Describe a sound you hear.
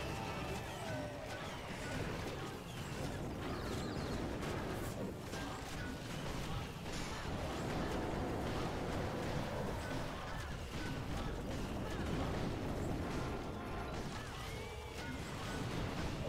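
Cartoonish battle sounds clash and clatter with steady small blasts.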